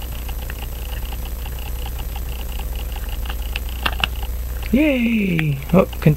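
A metal tool clicks softly against a pocket watch.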